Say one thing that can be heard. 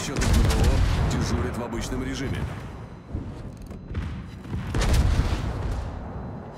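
Shells explode with rumbling blasts.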